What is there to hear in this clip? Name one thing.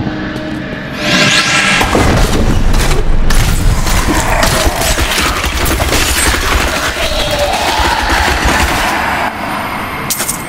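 Magic blasts crackle and boom during a loud fight.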